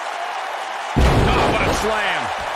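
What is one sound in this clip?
A wrestler slams an opponent onto the ring mat with a heavy thud.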